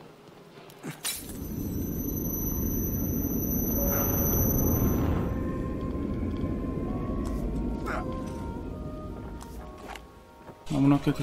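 A loud blast roars and rumbles, then slowly fades.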